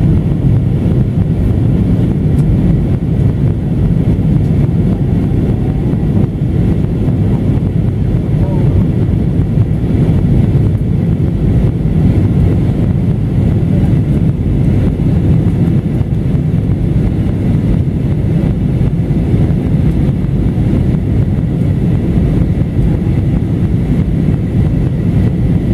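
A jet airliner's engines drone with a steady, deep roar inside the cabin.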